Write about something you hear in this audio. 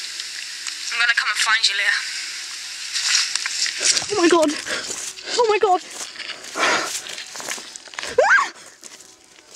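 A young woman talks through a phone speaker.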